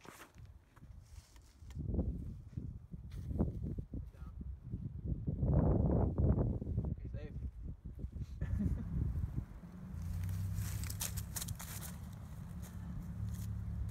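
Footsteps scuff across grass during a throwing run-up.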